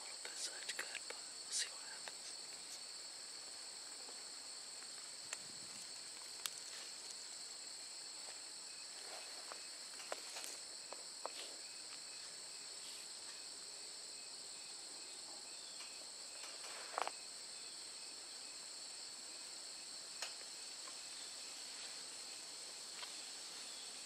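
Gear clicks and rattles softly close by.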